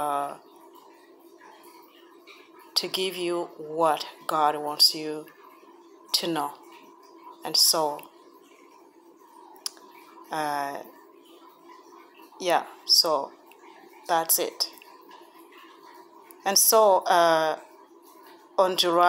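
A woman speaks slowly and calmly close to a phone microphone, pausing between phrases.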